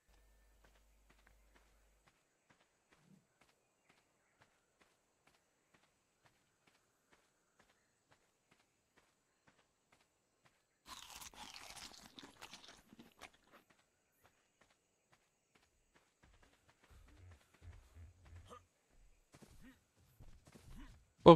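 Footsteps run over soft ground.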